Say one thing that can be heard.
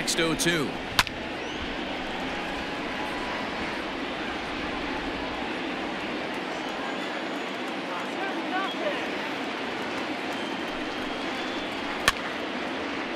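A bat sharply cracks against a ball.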